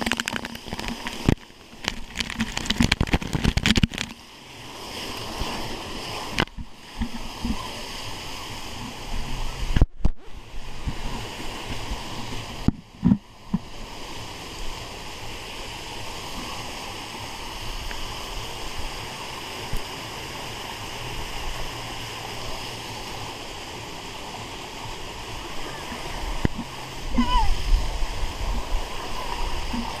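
Water rushes and gushes steadily from a fountain.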